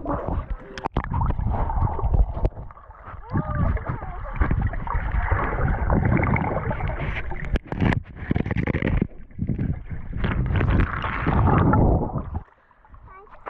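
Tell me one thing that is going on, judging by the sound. Water gurgles and rumbles close by, heard from underwater.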